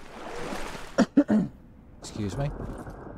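Water splashes as a swimmer climbs out.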